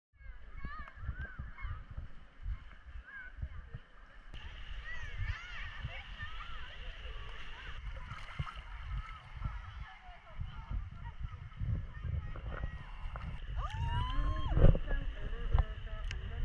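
Water sloshes and laps close by.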